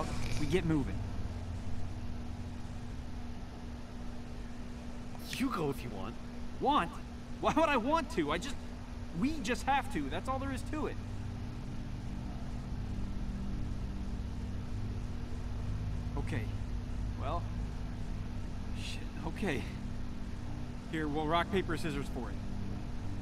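A young man speaks urgently and with frustration, close by.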